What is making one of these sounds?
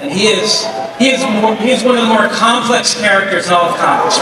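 A man speaks into a microphone, heard over loudspeakers in a large hall.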